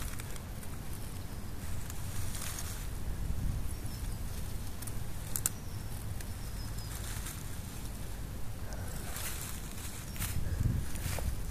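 A hand rustles through dry grass and fur.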